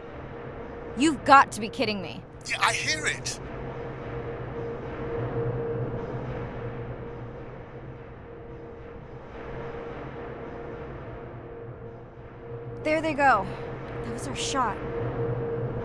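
Whales call underwater with short, sliding squeals and clicks.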